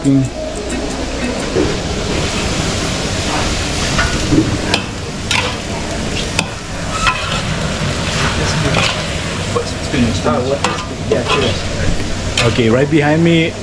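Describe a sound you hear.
Greens sizzle and hiss in a hot wok.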